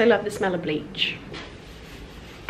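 A young woman talks to the listener up close in a calm, friendly voice.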